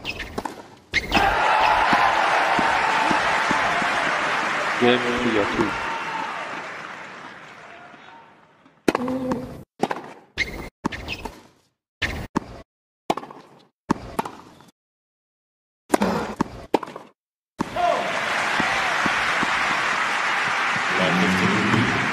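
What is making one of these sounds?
A crowd applauds loudly in a large arena.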